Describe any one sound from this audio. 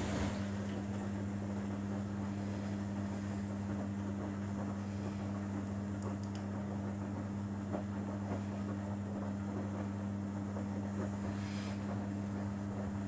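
A washing machine motor hums.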